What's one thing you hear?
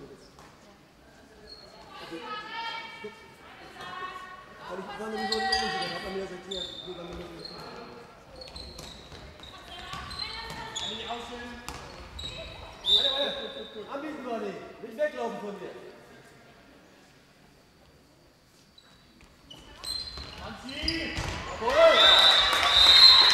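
A ball bounces on a hard floor.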